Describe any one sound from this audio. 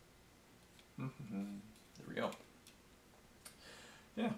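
A plastic model clicks and knocks as hands turn it over.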